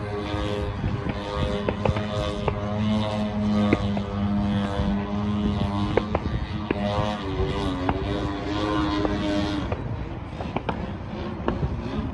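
A small propeller plane drones overhead, its engine pitch rising and falling as it turns.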